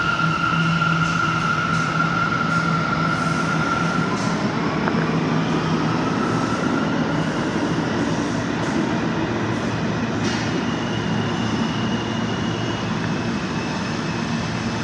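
A subway train's roar echoes through a large underground space.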